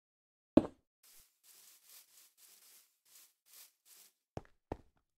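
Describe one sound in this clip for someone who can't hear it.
Soft footsteps crunch through grass.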